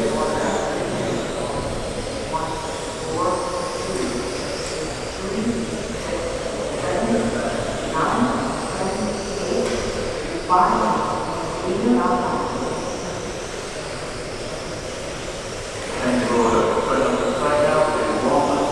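Small electric model cars whine at high speed in a large echoing hall.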